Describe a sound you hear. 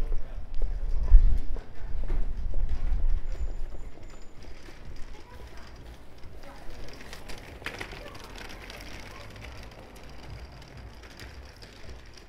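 Footsteps tap on a paved street outdoors.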